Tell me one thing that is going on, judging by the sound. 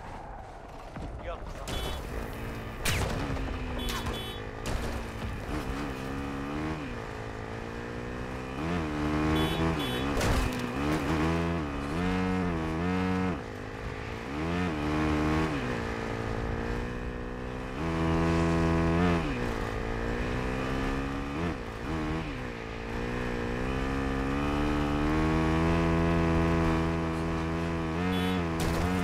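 A motorbike engine revs up and down as it rides.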